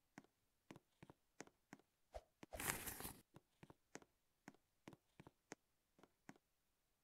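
Quick footsteps tap steadily on the ground.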